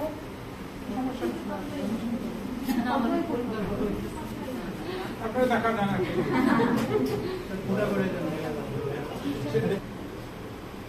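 A middle-aged man talks with animation nearby.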